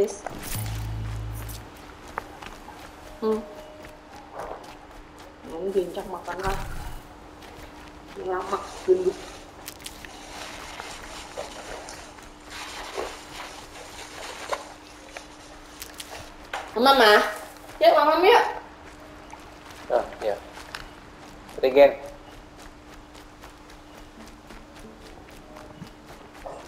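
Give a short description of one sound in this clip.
Footsteps run quickly through dry grass.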